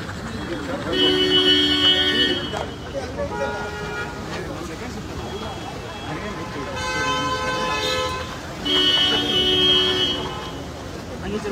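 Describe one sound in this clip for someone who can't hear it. A car horn honks several times.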